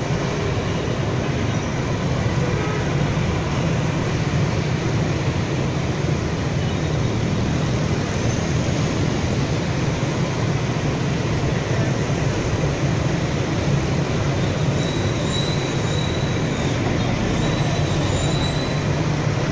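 Motorbike engines buzz past close by.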